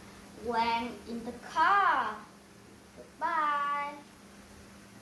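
A young boy speaks up clearly nearby, in short phrases.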